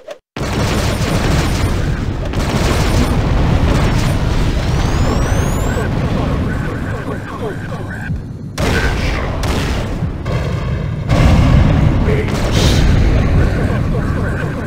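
Small arcade guns fire in quick bursts.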